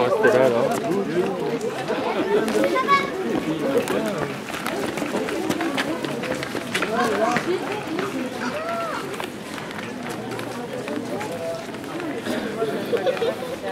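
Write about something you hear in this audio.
A young girl calls out excitedly.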